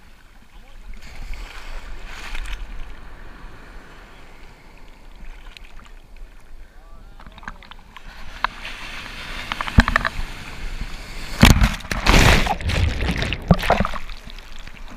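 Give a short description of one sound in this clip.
Water splashes and gurgles right against the microphone.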